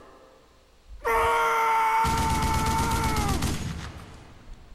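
A man roars a long, drawn-out scream.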